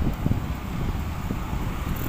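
A pickup truck drives by.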